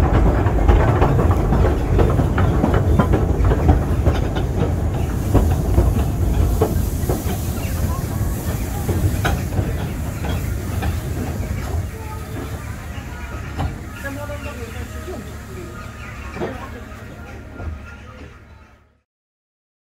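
A small train rumbles and clatters along its track.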